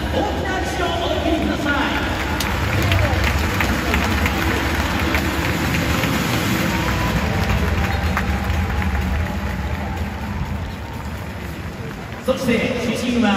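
A large crowd applauds and cheers in a big open stadium.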